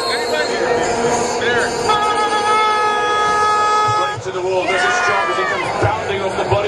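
Young men chatter and shout in a crowd.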